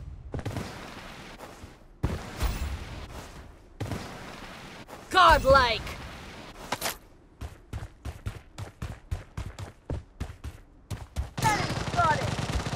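Footsteps thud quickly on dirt and concrete.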